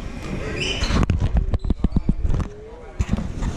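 A basketball bounces repeatedly on the court.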